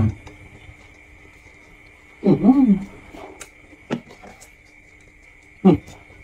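A man chews and crunches food up close.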